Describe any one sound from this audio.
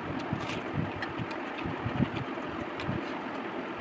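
A woman chews food wetly and loudly close to a microphone.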